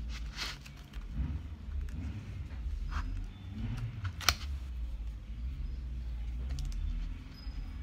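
Cotton fluff rustles softly as fingers stuff it into a glass bowl.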